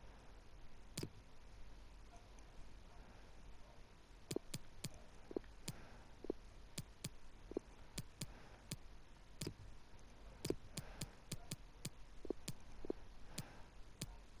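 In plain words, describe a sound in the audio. Short soft clicks tick again and again as a menu selection moves.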